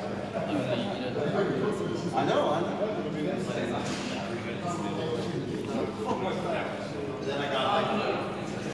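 Several young men chatter with animation.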